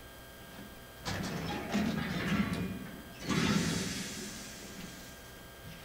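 A heavy metal hatch scrapes open with a loud clang.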